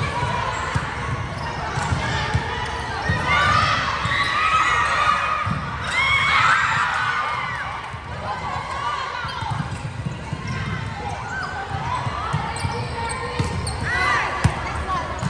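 Young women call out and shout across a large echoing hall.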